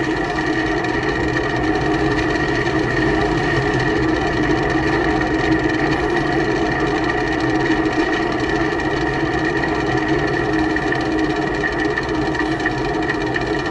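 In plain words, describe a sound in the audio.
A vehicle engine hums steadily while driving.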